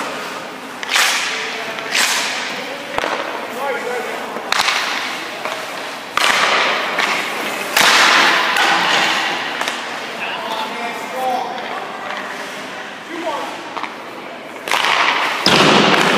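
Ice skates scrape and hiss sharply on ice.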